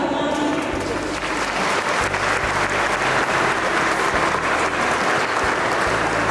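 A crowd applauds in an echoing hall.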